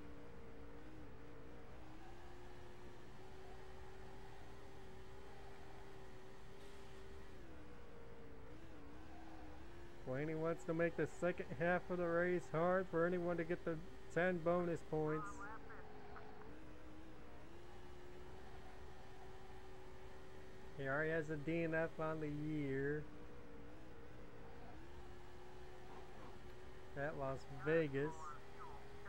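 A race car engine drones steadily, its pitch rising and falling through the laps.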